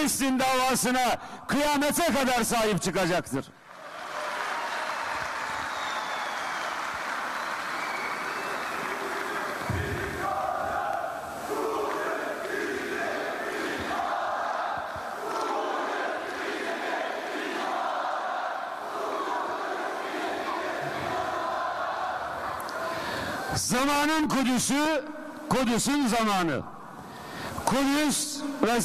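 A middle-aged man speaks with feeling through a microphone in a large echoing hall.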